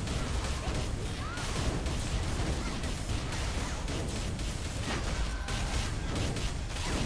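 Game combat effects clash and whoosh in quick bursts.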